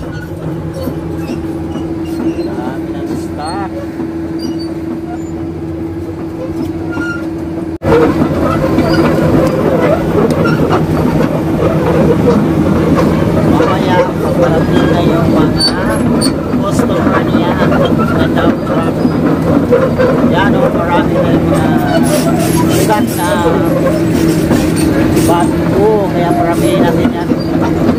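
A heavy engine drones steadily close by, growing louder partway through.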